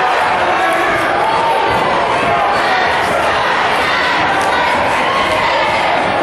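A large crowd cheers and chatters loudly in an echoing gym.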